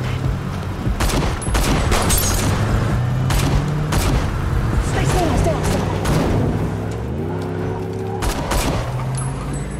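Gunshots bang sharply several times.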